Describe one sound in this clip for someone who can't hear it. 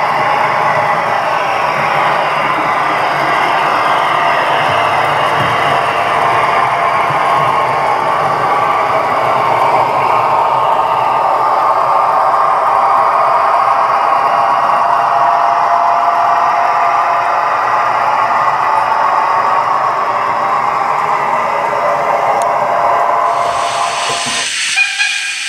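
A model train rumbles and clatters steadily along its track.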